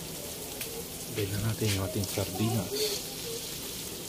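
Thick sauce pours from a can into the hot pan.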